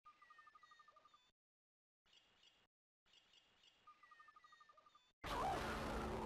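Soft electronic video game chimes play in short bursts.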